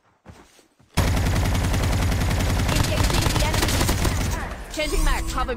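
Rapid gunfire rattles loudly in a video game.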